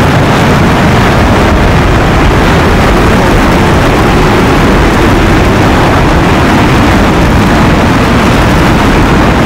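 A twin-engine fighter jet roars in flight.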